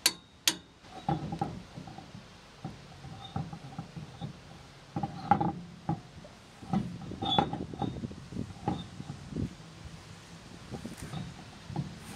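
A wheel bumps and scrapes against a hub.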